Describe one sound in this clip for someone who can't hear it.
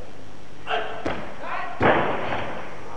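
A barbell crashes onto the platform with a loud clank.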